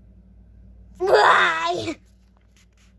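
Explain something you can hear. A young girl speaks loudly and briefly, close by.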